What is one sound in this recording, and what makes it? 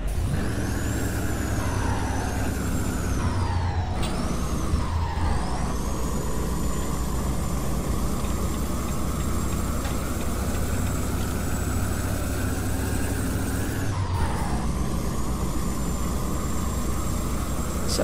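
A truck engine rumbles steadily at cruising speed.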